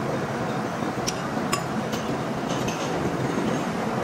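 A chuck wrench clicks as it tightens a metal jaw.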